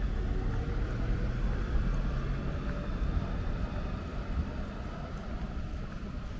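A truck engine idles nearby with a low rumble.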